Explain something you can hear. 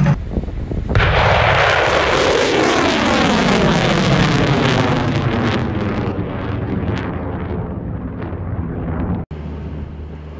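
A rocket motor roars loudly and slowly fades as the rocket climbs away.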